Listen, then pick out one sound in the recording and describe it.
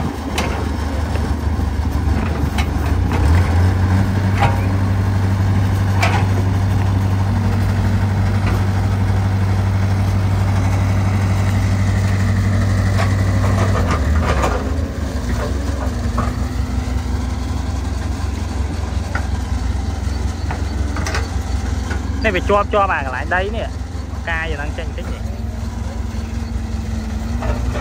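A diesel excavator engine rumbles close by, revving harder then easing off.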